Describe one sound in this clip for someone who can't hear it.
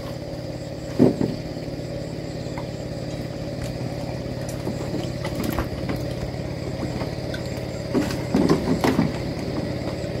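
Bamboo poles knock and clatter underfoot.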